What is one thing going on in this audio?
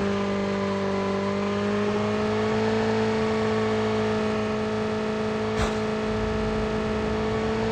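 A motorcycle engine hums steadily as it rides over rough ground.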